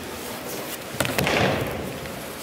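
A body thuds onto a mat in a large echoing hall.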